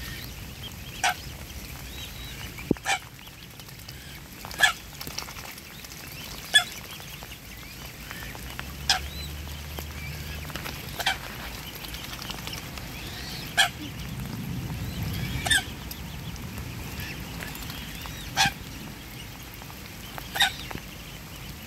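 Cygnets peep nearby.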